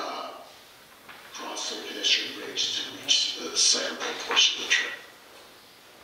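A man speaks through an online call microphone.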